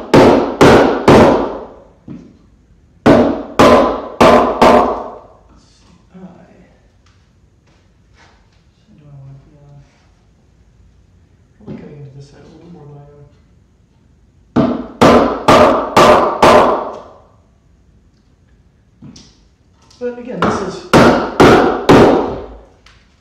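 A wooden mallet strikes a chisel into wood in quick bursts of sharp knocks.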